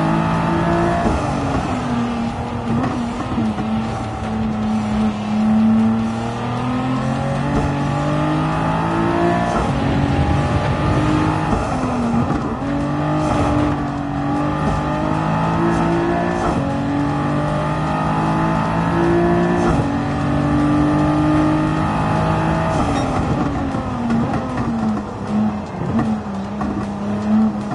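A racing car engine roars, rising in pitch through each gear and dropping sharply at each shift.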